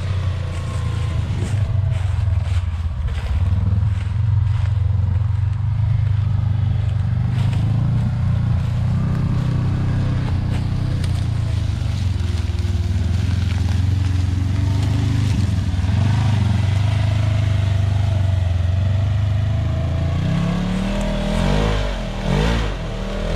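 A utility vehicle engine rumbles steadily close by.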